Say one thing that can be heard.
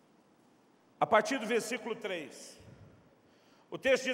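A man speaks calmly into a microphone, heard over loudspeakers in a large room.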